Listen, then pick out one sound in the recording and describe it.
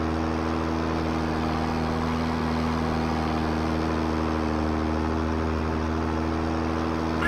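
A racing car engine drones steadily at high speed.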